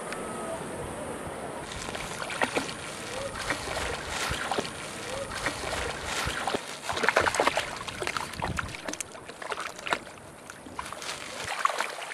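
A plastic bag crinkles as a dog tugs at it.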